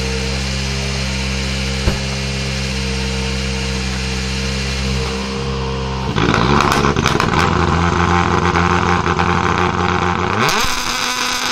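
A rally car engine idles loudly and revs hard.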